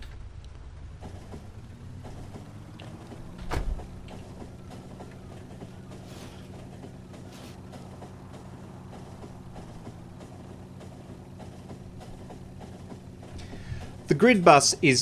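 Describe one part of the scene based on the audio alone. A train engine hums steadily as it rolls along.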